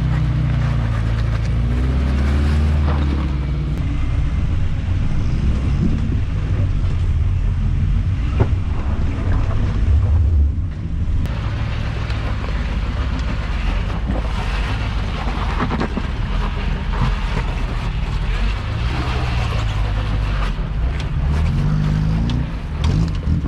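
Tyres crunch and grind over rocks.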